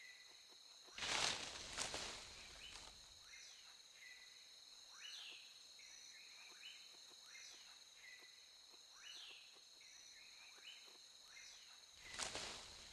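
A gorilla grunts loudly.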